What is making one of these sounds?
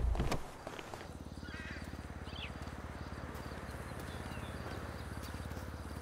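A car engine hums steadily as it drives past nearby.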